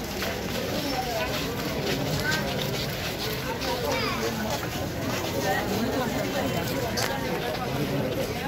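A crowd of men and women talk and murmur outdoors close by.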